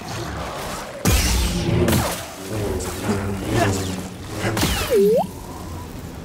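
A laser sword hums and swishes through the air.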